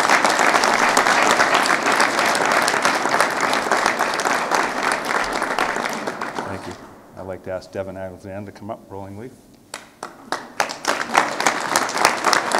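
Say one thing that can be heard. A crowd applauds and cheers loudly.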